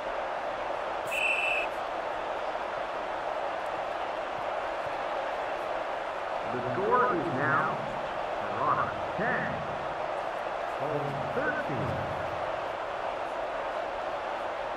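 A large crowd murmurs steadily in a stadium.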